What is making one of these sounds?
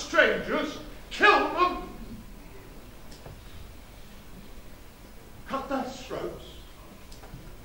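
A man speaks with animation over a loudspeaker in a large echoing hall.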